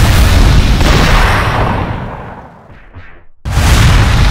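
A loud roar of rushing fire surges and then fades.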